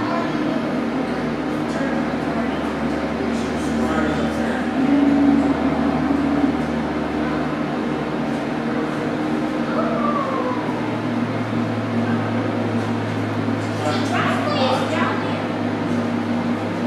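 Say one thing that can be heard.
Computers hum steadily.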